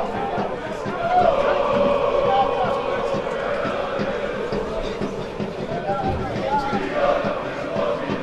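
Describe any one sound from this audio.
A small crowd of spectators shouts and calls out from the stands outdoors.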